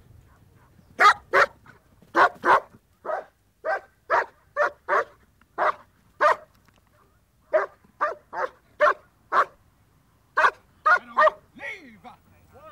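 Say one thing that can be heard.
A large dog barks loudly and repeatedly.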